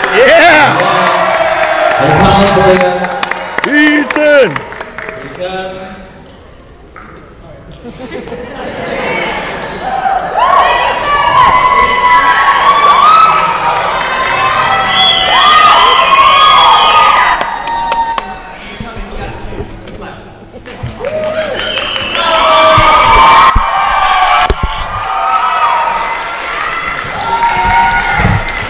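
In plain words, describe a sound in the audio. A choir of young voices sings on stage, heard from the audience in a large echoing hall.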